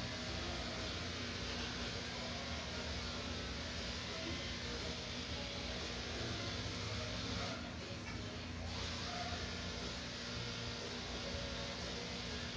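Electric pet clippers buzz through a dog's thick coat.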